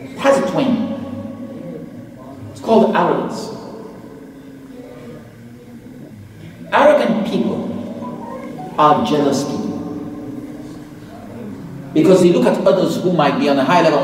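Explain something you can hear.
A man speaks with animation into a microphone in a reverberant room.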